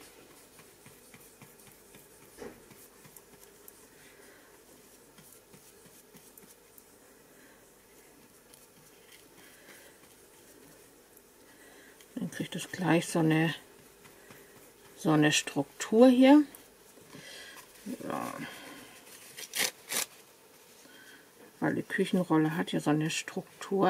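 A brush dabs softly on paper.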